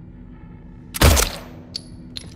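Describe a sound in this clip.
A gunshot fires once with a loud bang.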